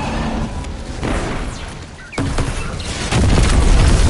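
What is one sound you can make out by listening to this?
Electric crackles and zaps snap loudly.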